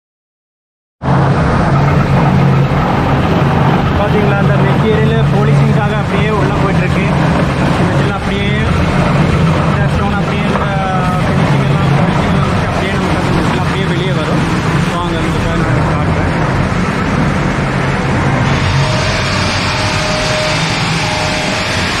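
Heavy machinery hums and rumbles loudly.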